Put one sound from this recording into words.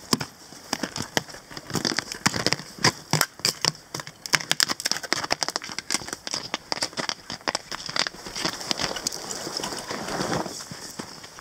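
Footsteps crunch through snow close by.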